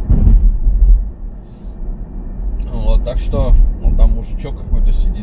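A car engine hums with a low rumble of tyres on the road.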